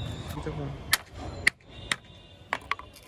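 A hammer taps a few times.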